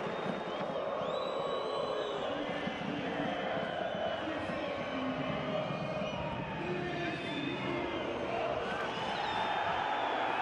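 Whistles and shouts ring out from the crowd.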